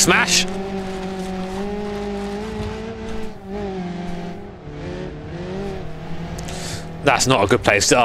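A car engine hums steadily and revs as the car drives.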